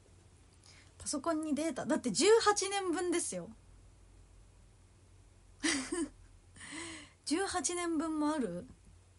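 A young woman speaks in a bright, animated voice close to the microphone.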